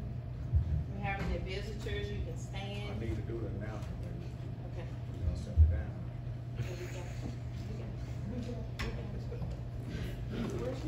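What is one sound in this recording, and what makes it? A man speaks calmly in an echoing hall.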